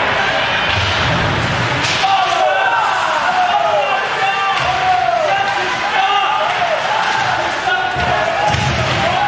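Hockey players crash against the boards with a thud.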